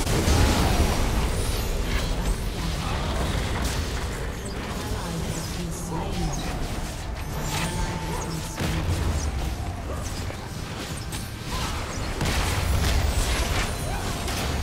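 Magic blasts and clashing combat sound effects burst again and again.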